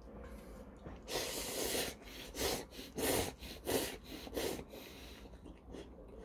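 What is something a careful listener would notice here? An elderly man slurps noodles loudly.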